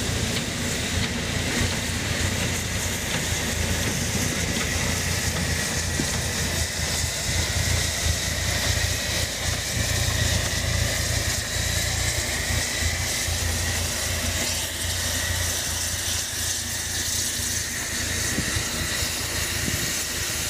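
A locomotive's wheels rumble and clank on the rails.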